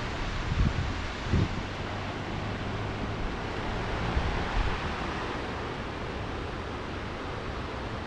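Waves wash onto a rocky shore.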